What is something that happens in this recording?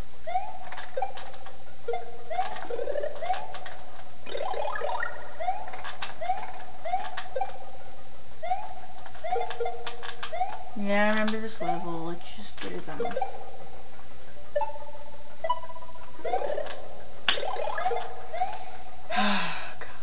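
Video game music with a bouncy melody plays from a television speaker.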